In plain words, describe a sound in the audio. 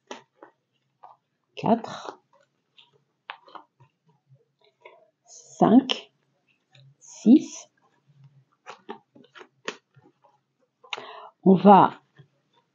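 Playing cards slide and tap softly as they are laid on a table.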